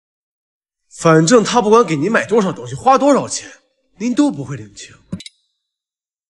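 A young man speaks sharply and with emotion, close by.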